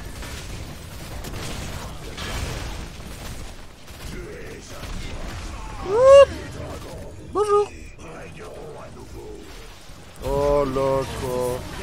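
Magic blasts crackle and burst in a fantasy battle.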